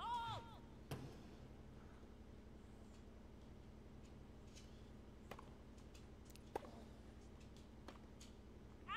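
A tennis ball is struck sharply with a racket, back and forth.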